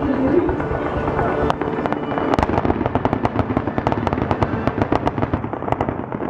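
Fireworks boom loudly overhead.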